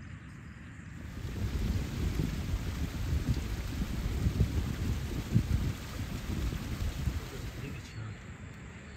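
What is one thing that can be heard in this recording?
A small stream trickles over rocks.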